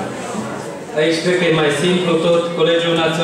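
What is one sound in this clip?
An elderly man speaks through a microphone in a large echoing hall.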